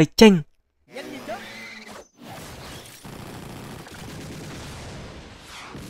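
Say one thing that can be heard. Battle sound effects whoosh and crash as magic blasts strike.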